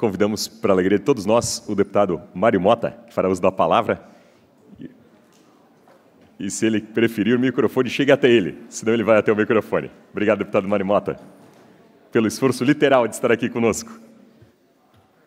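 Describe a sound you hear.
A man speaks into a microphone over a loudspeaker in a large hall, in a cheerful tone.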